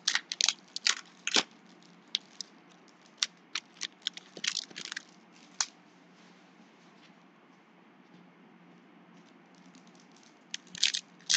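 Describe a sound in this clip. A foil wrapper crinkles and rustles in someone's hands.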